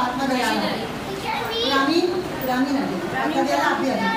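Many young children chatter loudly together in a room.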